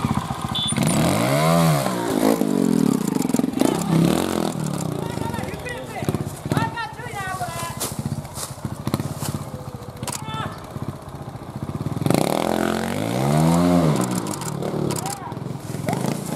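A motorcycle engine revs in loud, sharp bursts.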